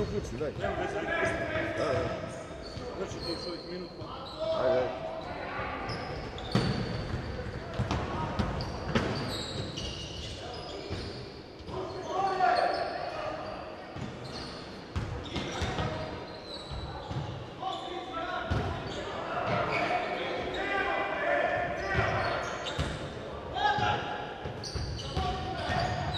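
A basketball bounces on the floor with dull thuds.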